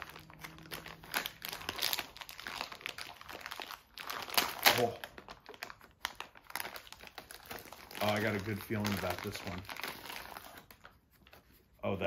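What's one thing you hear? A plastic snack wrapper crinkles and rustles close by.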